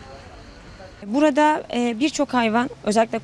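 A young woman speaks clearly into a close microphone.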